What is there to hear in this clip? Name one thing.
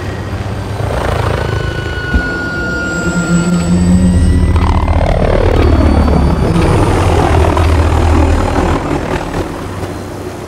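A helicopter's rotor thunders overhead and then moves away.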